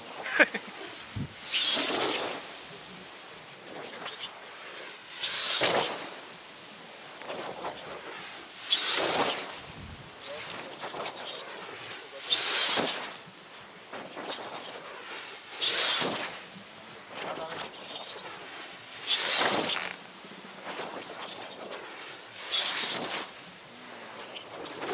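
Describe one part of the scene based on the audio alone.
Wind blows in gusts across an open hilltop.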